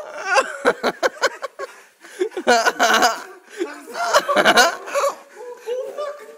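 Young men shout and laugh loudly outdoors.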